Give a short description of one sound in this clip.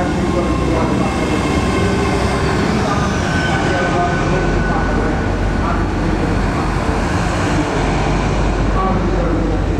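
A train rumbles past close by on the rails.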